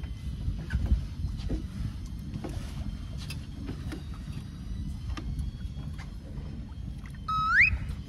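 A fishing reel clicks and rattles as line is drawn in.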